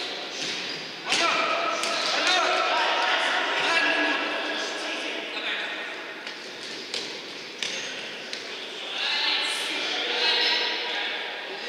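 Shoes squeak on the hall floor.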